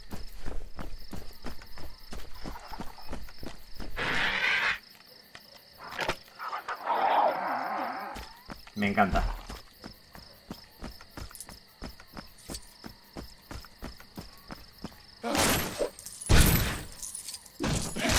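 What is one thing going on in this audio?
Quick footsteps patter on gravel.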